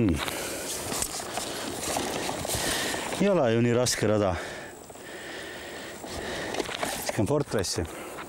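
A bag's contents rustle as a man rummages through it.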